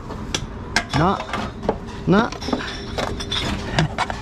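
A plastic shopping basket rattles and knocks.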